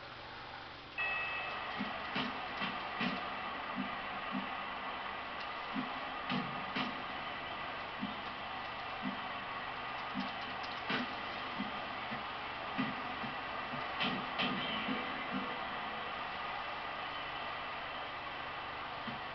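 A game crowd roars steadily in the background.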